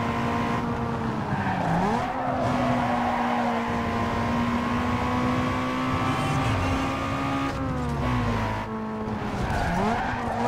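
Tyres screech as a car skids through turns.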